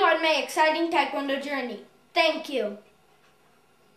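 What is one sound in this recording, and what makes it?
A young boy speaks close by, reading out in a clear voice.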